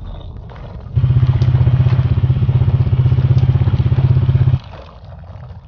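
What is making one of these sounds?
A video game drill buzzes loudly and steadily.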